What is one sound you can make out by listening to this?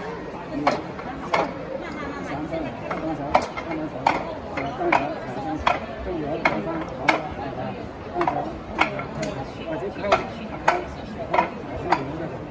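Hands strike a wooden post in sharp, quick knocks.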